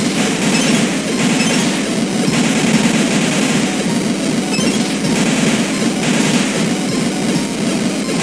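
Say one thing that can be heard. Bursts of game sound effects crackle as fireballs are shot.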